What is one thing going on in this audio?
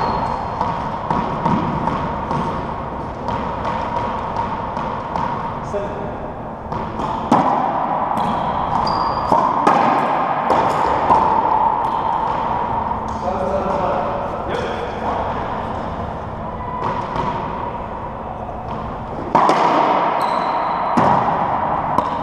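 A racquetball is struck hard and smacks off the walls of an echoing court.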